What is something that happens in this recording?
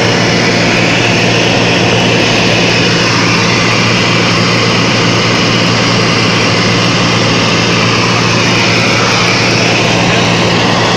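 A small propeller plane's engine drones loudly and steadily.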